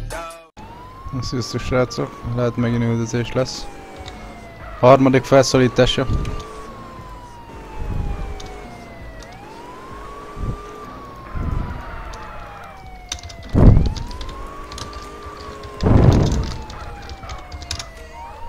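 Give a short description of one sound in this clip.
A police siren wails in repeating rising and falling sweeps.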